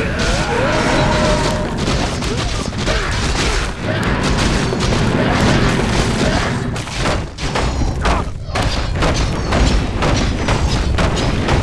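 Magic blasts and weapon clashes crackle in a fierce battle.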